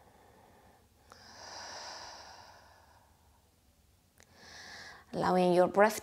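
A woman breathes in and out slowly and audibly, close to a microphone.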